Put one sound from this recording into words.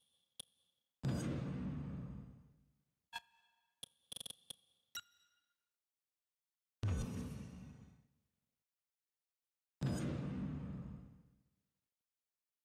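Deep whooshing booms swell and fade away.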